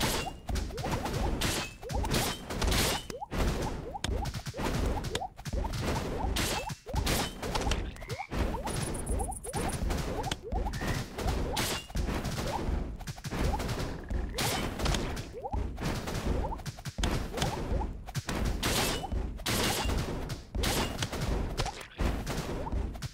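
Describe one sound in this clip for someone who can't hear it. Small explosions burst again and again.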